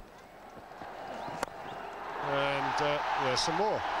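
A bat strikes a cricket ball with a sharp crack.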